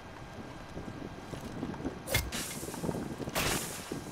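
A heavy hammer smashes into a wall.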